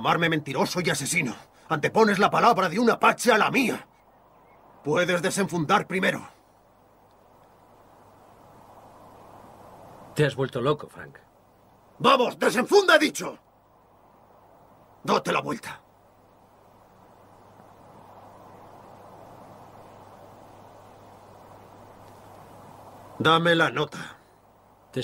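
A man speaks close by in short bursts, with pauses between.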